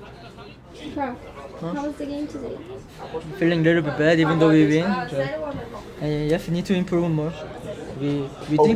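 A young man speaks calmly and softly, close by.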